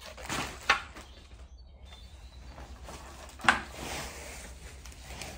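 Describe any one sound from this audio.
A roll of plastic wrapping rustles and crinkles as it is handled.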